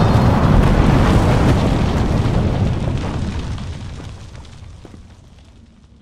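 Rubble crashes down with a deep rumble that slowly fades.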